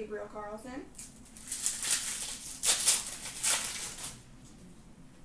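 A foil card wrapper crinkles and tears as it is ripped open.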